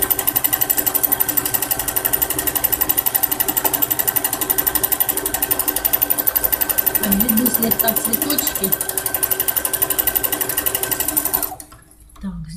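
A sewing machine runs fast with a rapid, steady clatter of stitching, then stops.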